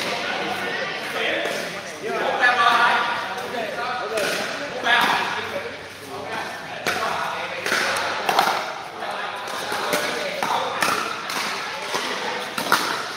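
Men talk and call out casually in a large echoing hall.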